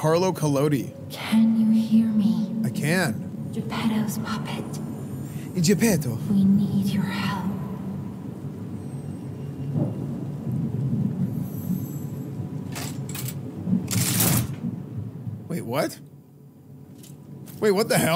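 A young man talks casually into a headset microphone, close by.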